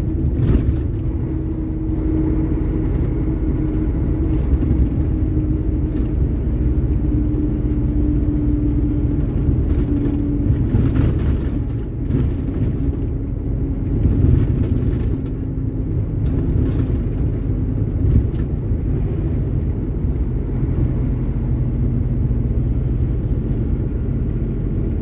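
Tyres roll on a paved road.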